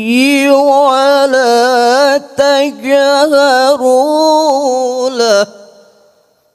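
A man chants in a melodic, sustained voice through a microphone, with a light echo.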